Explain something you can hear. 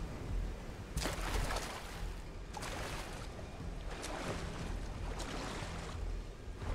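Water splashes with each stride as someone wades through it.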